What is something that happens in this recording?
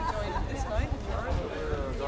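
A crowd of adults murmurs and chats quietly outdoors.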